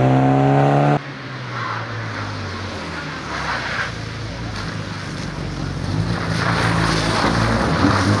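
A four-cylinder rally car engine accelerates toward the listener.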